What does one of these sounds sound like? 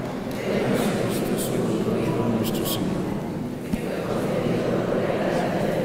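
A middle-aged man speaks steadily through a microphone in an echoing hall.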